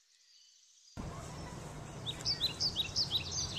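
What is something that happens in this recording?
A child walks across grass with soft footsteps.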